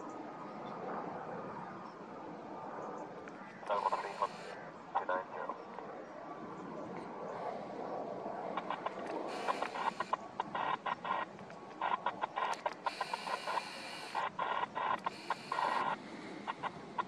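A jet aircraft engine roars steadily overhead.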